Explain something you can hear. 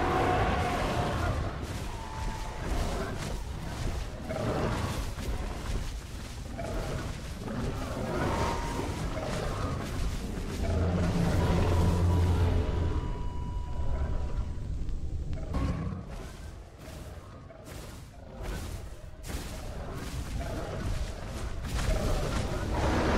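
Large beasts roar and growl close by.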